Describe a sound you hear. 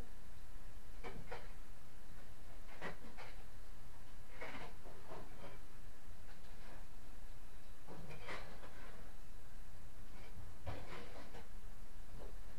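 A tool scrapes against a wall in short, rough strokes.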